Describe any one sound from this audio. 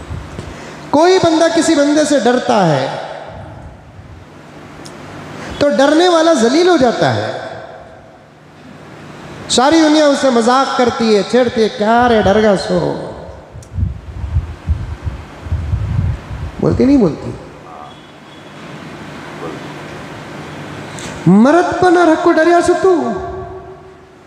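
An older man chants in a melodic, drawn-out voice through a microphone, with pauses between phrases.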